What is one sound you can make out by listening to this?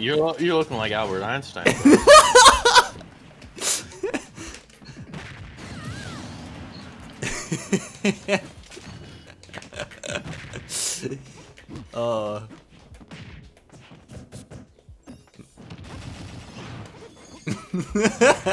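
A young man laughs and talks with animation close to a microphone.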